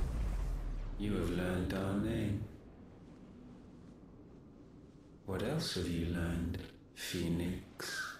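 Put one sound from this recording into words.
A man speaks in a slow, deep, echoing voice.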